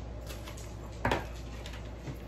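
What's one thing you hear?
A ceramic object knocks on a table.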